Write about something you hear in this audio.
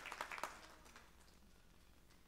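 Applause from an audience dies away in a hall.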